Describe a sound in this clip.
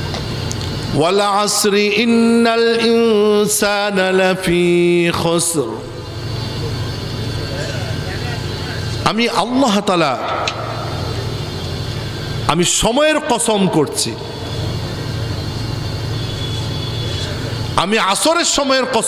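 A man chants and preaches in a long, drawn-out singing voice through a loud microphone and loudspeakers.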